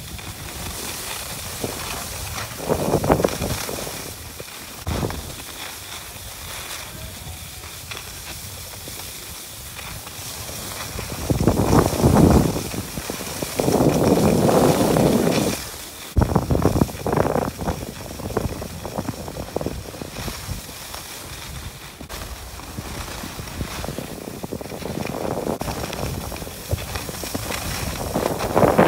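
Wind rushes past, outdoors.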